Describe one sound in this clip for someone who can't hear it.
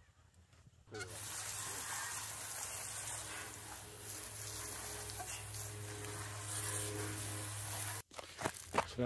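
A hose sprays water in a loud hissing stream.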